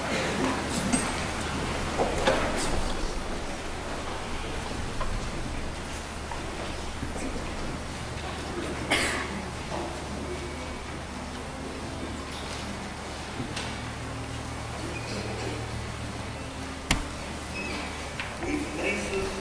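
A congregation murmurs and shuffles in wooden pews.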